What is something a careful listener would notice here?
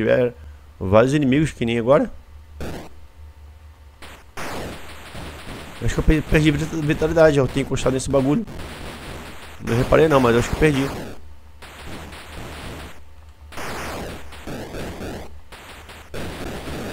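Electronic game sound effects chirp and warble in quick bursts.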